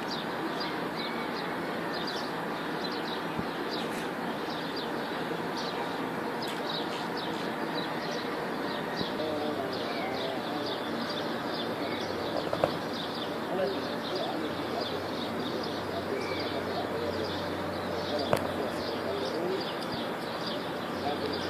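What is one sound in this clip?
A city hums steadily in the distance.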